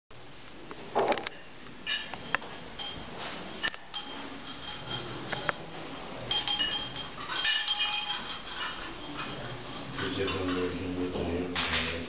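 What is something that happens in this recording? Small objects clink and knock.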